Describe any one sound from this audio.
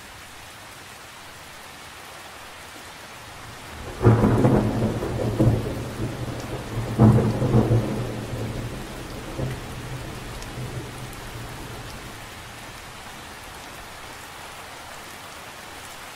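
Light rain patters softly on the surface of a lake.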